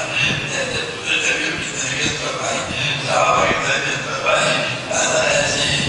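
An elderly man speaks with feeling to a crowd of men.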